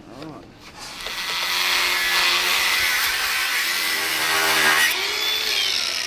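A grinder whines against metal.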